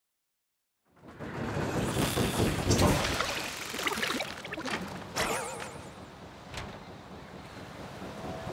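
Lively game music plays.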